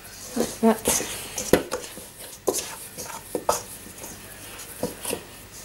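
Hands knead and squish dough in a metal bowl.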